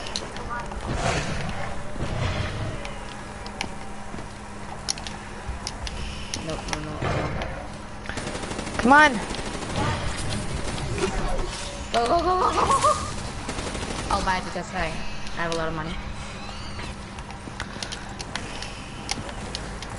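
Electric crackling zaps from a game.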